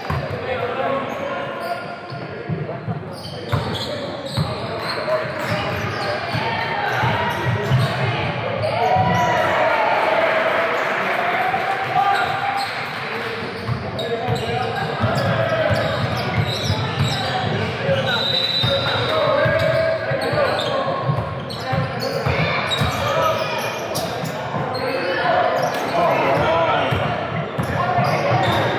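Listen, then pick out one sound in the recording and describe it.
Voices of young players and spectators call out and chatter in a large echoing gym.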